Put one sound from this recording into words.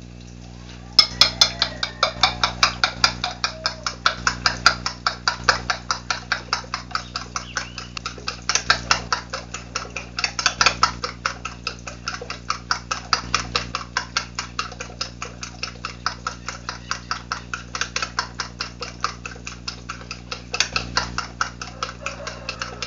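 A fork beats eggs against a plate with quick, steady clicking.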